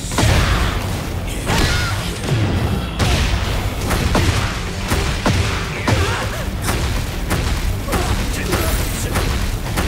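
Explosions burst and rumble.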